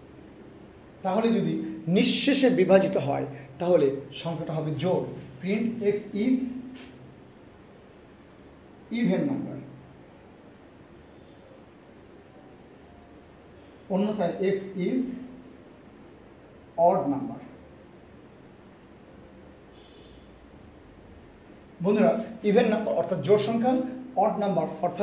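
A man speaks calmly and clearly into a close microphone, in short bursts with pauses.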